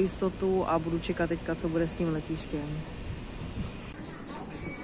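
A woman talks with animation close to a microphone, outdoors in wind.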